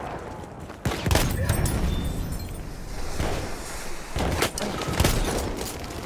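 A shotgun fires.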